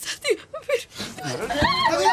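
A woman cries out in distress.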